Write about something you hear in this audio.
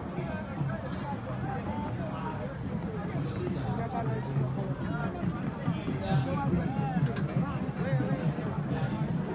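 A crowd of men and women chatter all around.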